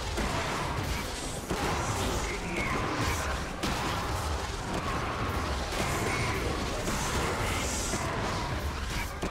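Fantasy battle sound effects clash and burst as characters fight.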